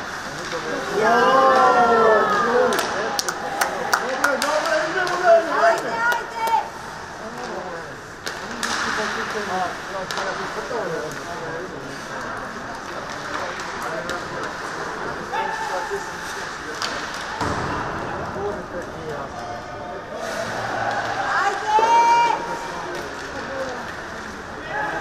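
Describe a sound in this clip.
Skates scrape and hiss across the ice in an echoing rink.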